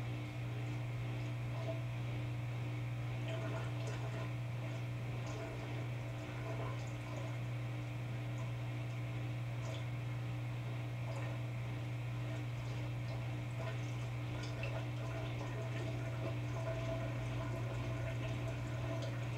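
A washing machine hums steadily as its drum turns.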